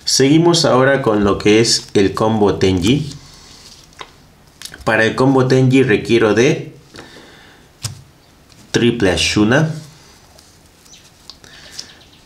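Plastic card sleeves rustle and click softly as cards are handled.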